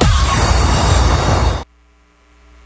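A large crowd cheers loudly, then falls quiet.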